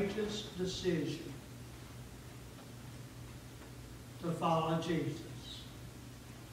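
An older man speaks slowly and calmly into a microphone, with pauses.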